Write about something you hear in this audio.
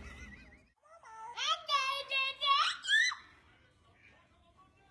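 A young boy giggles and babbles up close.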